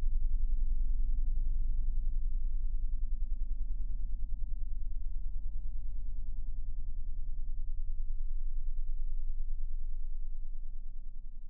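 A glowing electric element hums with a low, rapidly pulsing buzz.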